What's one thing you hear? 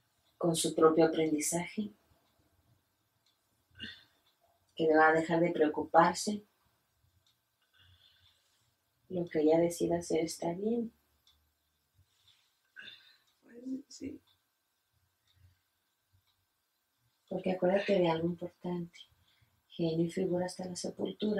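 A middle-aged woman speaks calmly and closely, in short phrases with pauses.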